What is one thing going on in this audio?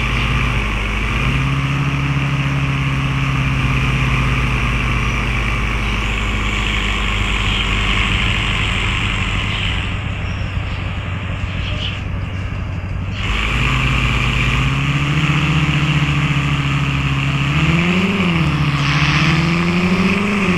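A car engine hums steadily and rises in pitch as it speeds up.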